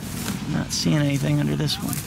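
Dry plant matter rustles as a hand tosses it.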